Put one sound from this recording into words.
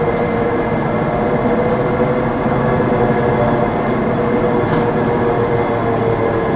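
A bus rattles and rumbles as it rolls along the road.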